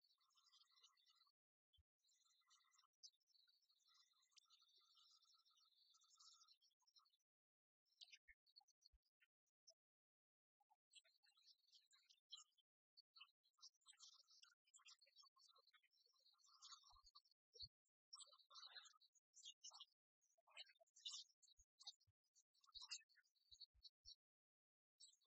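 Game pieces click and slide on a wooden table.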